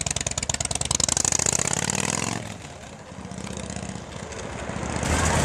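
A motorcycle engine revs up and pulls away.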